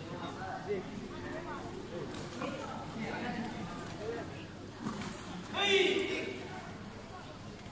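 Spectators call out and chatter in a large echoing hall.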